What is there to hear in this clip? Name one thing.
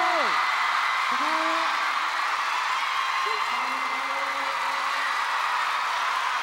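A large crowd screams and cheers loudly in a big echoing arena.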